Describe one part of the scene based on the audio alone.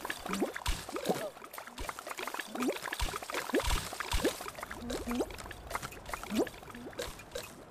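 Cartoon jump sound effects bloop upward in pitch.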